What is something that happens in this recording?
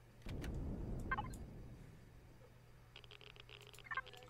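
Short electronic beeps sound as a game menu is opened and scrolled.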